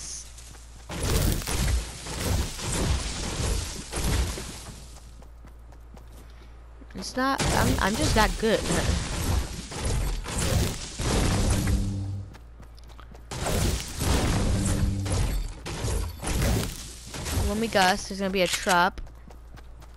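A pickaxe chops through leafy bushes.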